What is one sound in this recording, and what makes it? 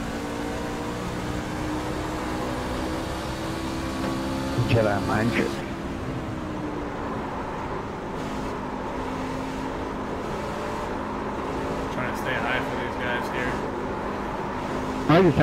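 A race car engine drones steadily at high revs.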